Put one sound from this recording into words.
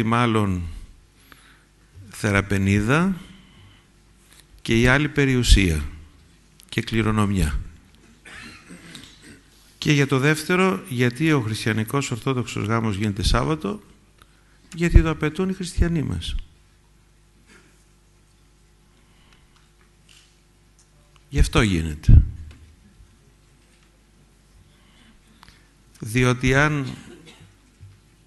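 An elderly man speaks calmly into a microphone, in phrases broken by pauses.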